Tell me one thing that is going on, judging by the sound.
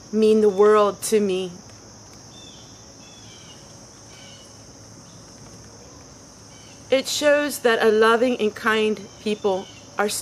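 A woman speaks calmly and warmly, close up.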